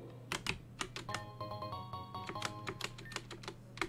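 A short cheerful game jingle plays.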